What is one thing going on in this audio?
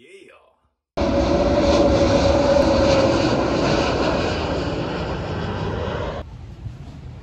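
A jet airliner roars loudly overhead.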